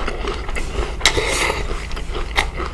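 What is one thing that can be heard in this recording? A man slurps noodles close to a microphone.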